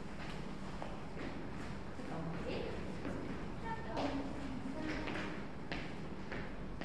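Sneakers squeak and thud on a wooden floor.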